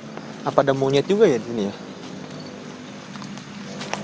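A man's footsteps rustle through dry leaves.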